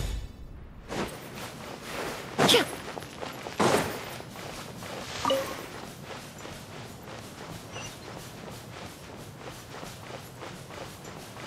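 Footsteps patter quickly over soft ground.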